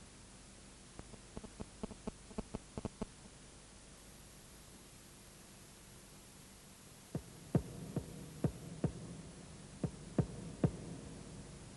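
A basketball knocks against a hoop's rim.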